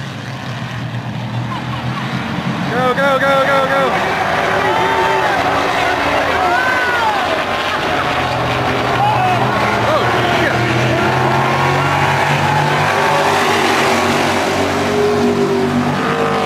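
Race car engines roar steadily.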